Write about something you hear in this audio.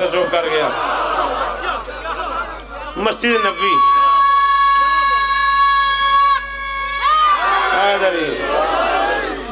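A man recites loudly and with passion through a microphone.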